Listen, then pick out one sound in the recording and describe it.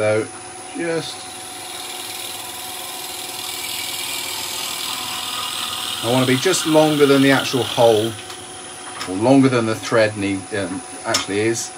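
A drill bit bores into spinning wood with a scraping hiss.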